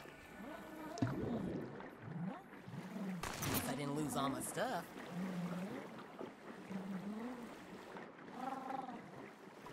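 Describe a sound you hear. Water splashes as a swimmer dives in and paddles through it.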